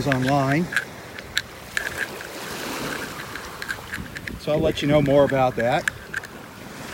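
Shallow surf washes gently over sand.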